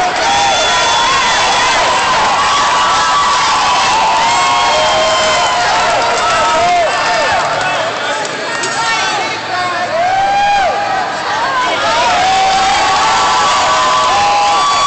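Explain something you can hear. A crowd of men and women shouts and cheers in a large echoing hall.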